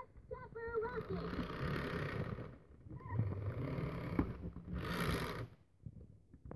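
A toy airplane rolls across a soft fabric surface with a rushing sound.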